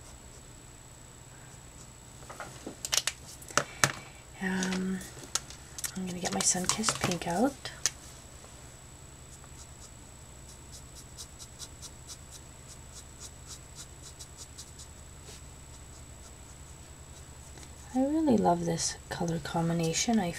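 A felt-tip marker squeaks and scratches softly across paper.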